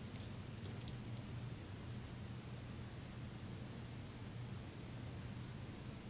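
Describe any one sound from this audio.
A small spoon scrapes in a tiny dish.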